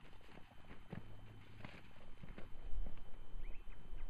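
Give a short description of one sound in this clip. Boots crunch on rocky ground.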